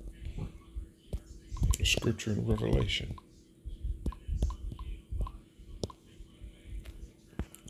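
Fingers tap lightly on a touchscreen.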